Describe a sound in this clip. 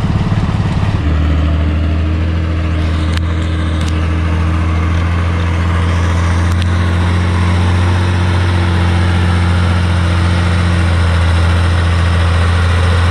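A tractor engine hums steadily at a distance.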